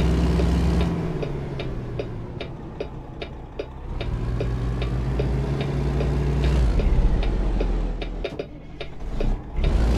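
A turn signal ticks at an even pace.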